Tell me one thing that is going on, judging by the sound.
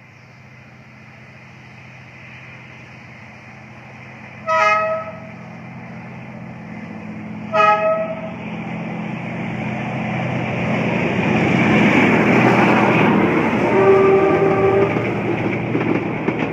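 A diesel locomotive engine rumbles, growing louder as it approaches.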